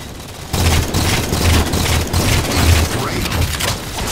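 An energy shield crackles and fizzes.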